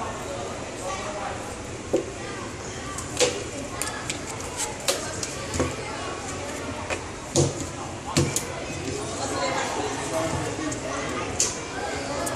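Cards shuffle with a soft riffling.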